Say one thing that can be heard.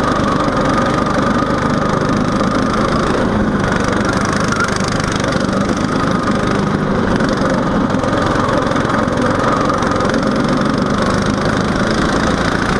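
A go-kart engine drones loudly close by, rising and falling in pitch.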